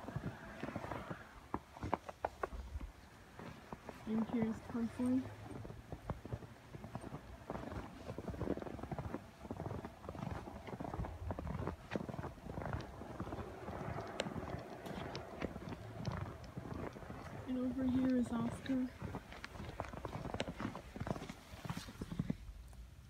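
Footsteps crunch through fresh snow.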